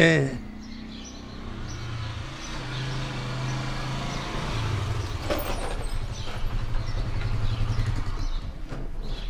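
A motorbike engine rumbles as it approaches.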